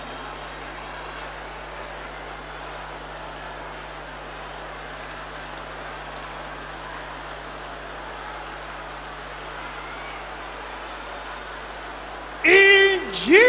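A large crowd prays aloud together in a loud murmur.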